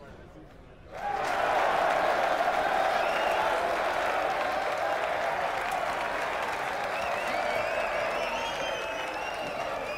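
A crowd cheers and roars loudly in a large arena.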